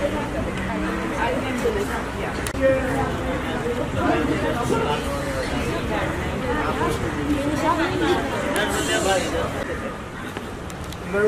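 A crowd of girls and women chatter outdoors.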